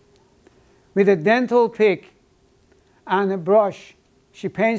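An elderly man speaks calmly and clearly, close by, in a slightly echoing room.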